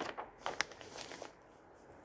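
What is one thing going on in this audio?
A hand rubs and smooths a sheet of paper flat.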